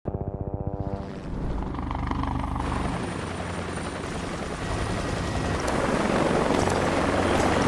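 A helicopter's rotor thumps close by.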